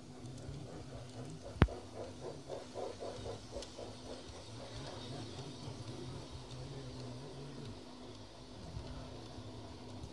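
A garden-scale electric model train hums past.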